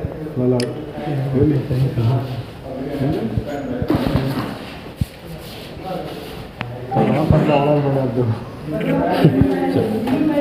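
A young man speaks calmly into a microphone close by.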